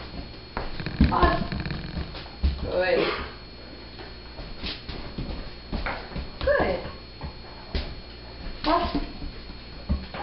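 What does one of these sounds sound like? A woman speaks to a dog nearby in an upbeat voice.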